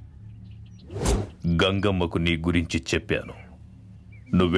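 A middle-aged man talks on a phone.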